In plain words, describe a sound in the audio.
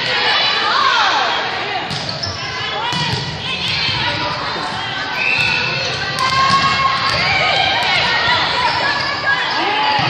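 Girls and young women shout and cheer throughout a large echoing gym.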